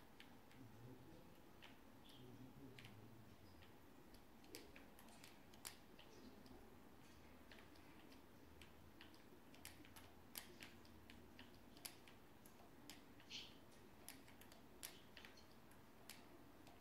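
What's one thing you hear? Game building pieces snap into place with quick, sharp clicks.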